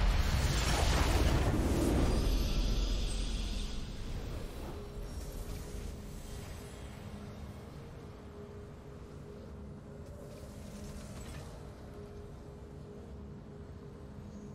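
A triumphant game fanfare bursts out and slowly fades into a soft, steady hum.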